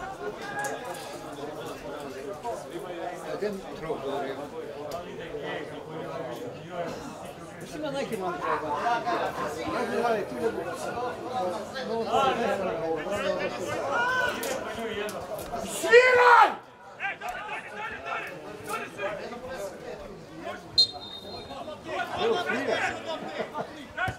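Footballers shout to each other across an open field.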